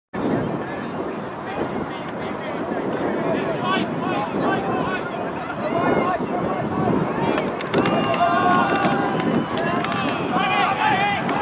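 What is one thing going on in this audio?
A crowd of young men talk and call out nearby outdoors.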